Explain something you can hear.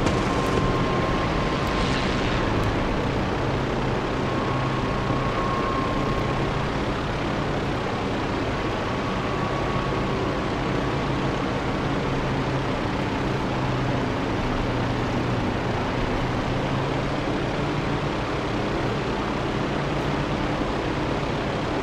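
A propeller plane's engine roars steadily.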